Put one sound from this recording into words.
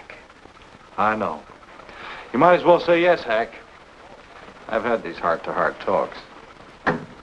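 A woman speaks lightly in reply.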